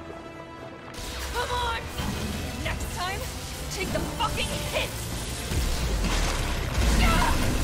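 A heavy energy gun fires with a deep, roaring blast.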